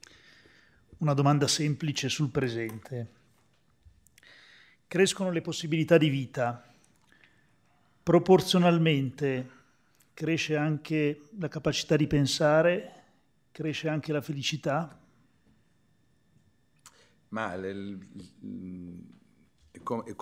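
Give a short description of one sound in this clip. A man speaks calmly into a microphone, heard through a loudspeaker in a room.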